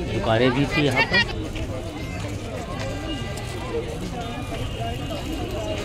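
A crowd of people chatters and murmurs all around.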